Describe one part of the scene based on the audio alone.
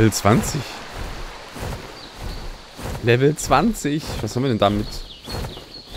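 Large wings flap with soft whooshing beats.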